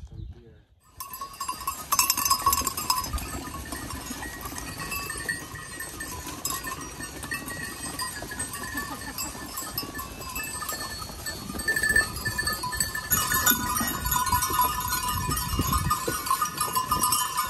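Goat bells clink and jingle steadily.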